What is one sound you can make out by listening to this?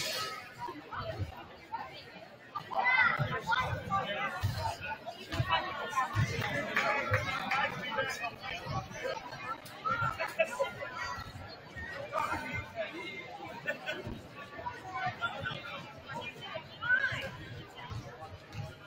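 Basketballs bounce on a wooden floor.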